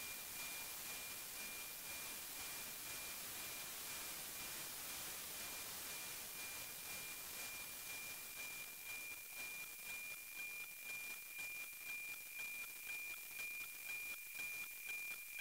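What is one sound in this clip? A radio hisses loudly with static.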